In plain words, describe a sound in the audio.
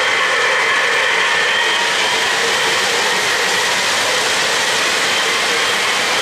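A model train rattles and hums steadily along metal tracks close by.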